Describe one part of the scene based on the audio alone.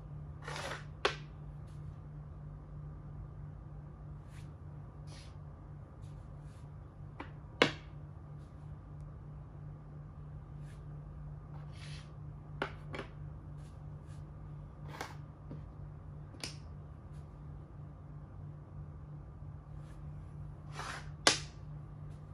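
Wooden game pieces click against a board as they are moved.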